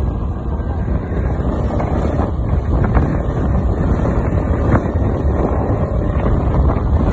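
A motorbike engine hums while riding.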